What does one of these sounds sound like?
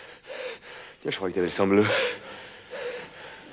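A younger man speaks urgently, close by.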